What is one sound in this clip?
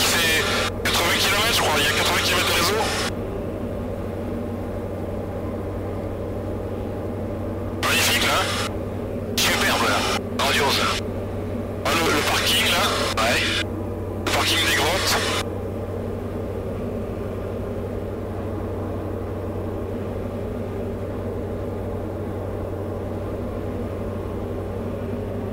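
A small plane's propeller engine drones steadily, heard from inside the cabin.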